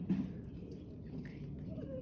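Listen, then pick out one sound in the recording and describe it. A turkey clucks softly nearby.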